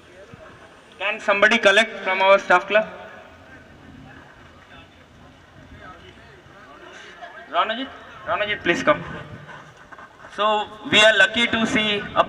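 A man announces loudly through a microphone over loudspeakers outdoors, in short bursts.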